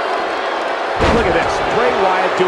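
A body slams hard onto a wrestling mat with a heavy thud.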